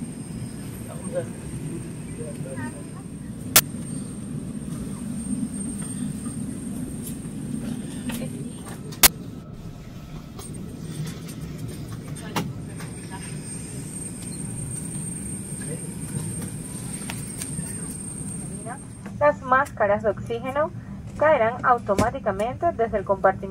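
An aircraft cabin hums with a steady low drone.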